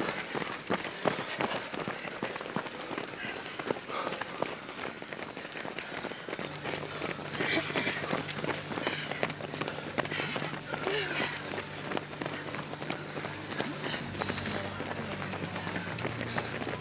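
Many runners' footsteps patter on a paved road outdoors.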